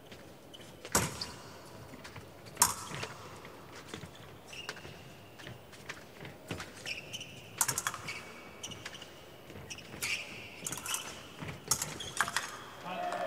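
Fencing blades clash with sharp metallic clicks.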